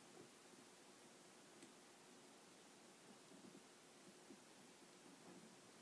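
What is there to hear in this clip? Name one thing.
Small plastic toy figures softly tap and rattle together.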